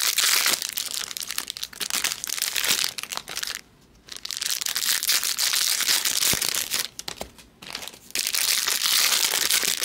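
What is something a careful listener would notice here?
Foil card packs rustle and crinkle in someone's hands.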